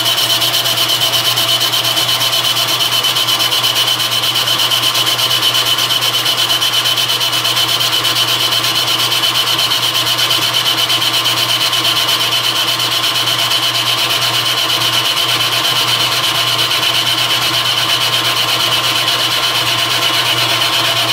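A cutting tool scrapes and whines against spinning metal.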